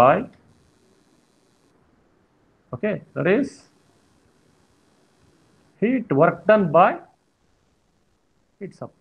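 A man speaks calmly into a microphone, explaining in short phrases with pauses.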